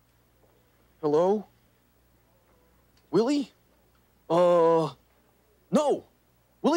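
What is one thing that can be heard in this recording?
A man speaks into a phone in a high, animated voice.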